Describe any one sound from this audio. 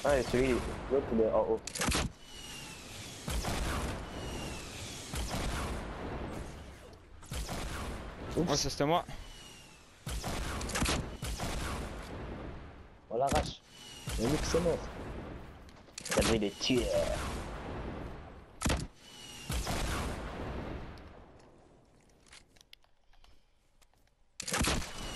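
A rocket launcher fires.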